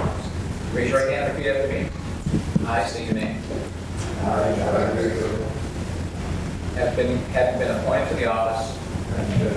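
A man reads out phrases through a microphone in an echoing room.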